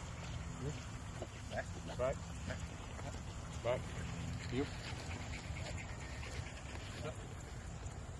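A man makes short high chirping calls to a dog.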